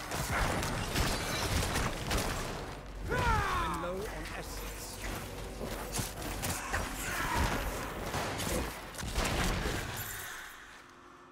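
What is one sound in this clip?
Weapons clash and slash in fast, busy game combat.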